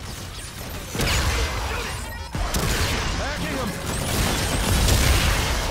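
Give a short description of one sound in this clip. An automatic rifle fires bursts in a video game.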